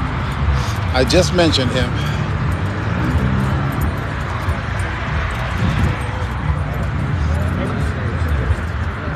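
Young men talk and call out to each other outdoors.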